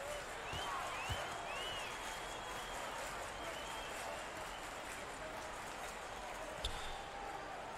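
A basketball thumps as it bounces on the court.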